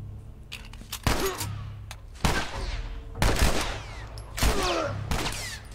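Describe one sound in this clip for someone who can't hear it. Gunshots ring out in quick bursts with echoing tails.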